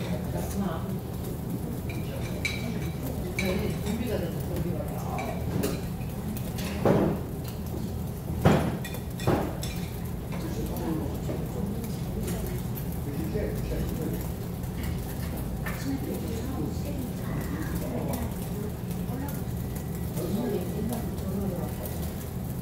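Meat sizzles steadily on a grill.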